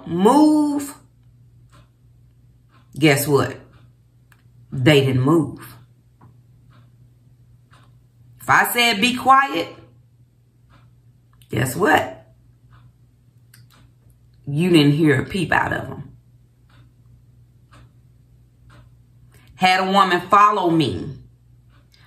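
A woman speaks calmly into a close microphone, in short phrases with pauses.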